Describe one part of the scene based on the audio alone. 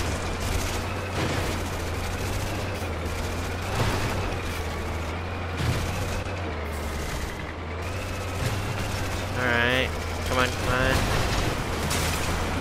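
A heavy vehicle's engine rumbles steadily.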